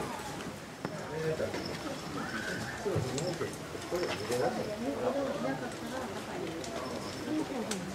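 Grass rustles as a small animal walks through it.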